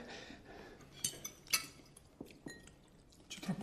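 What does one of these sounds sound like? Cutlery clinks against plates.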